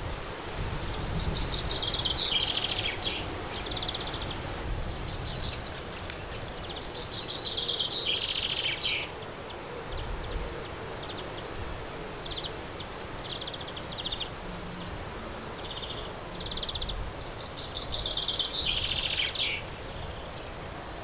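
A sparrow chirps in quick bursts of high twitters.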